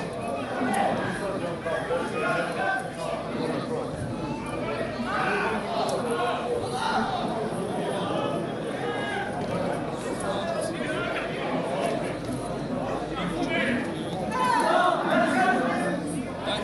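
Young players shout to each other across an open outdoor field.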